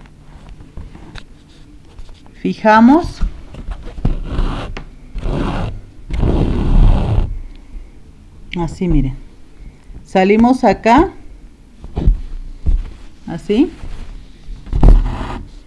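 Thread rustles as it is pulled through cloth.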